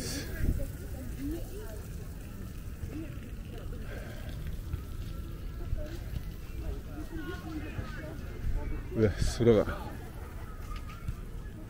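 People talk a short way off, outdoors.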